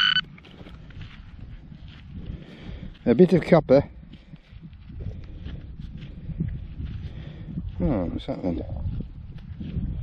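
Gloved fingers rub and crumble dry soil off a small object.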